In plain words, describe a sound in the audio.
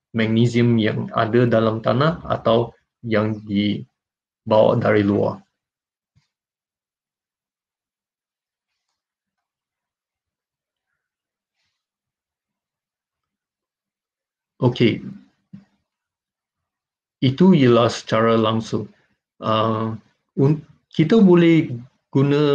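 A man speaks calmly over an online call, pausing at times.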